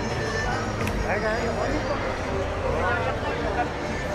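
Small children chatter in high voices close by.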